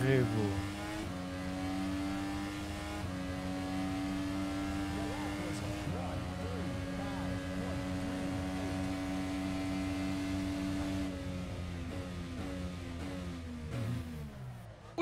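A single-seater race car's engine drones at high revs.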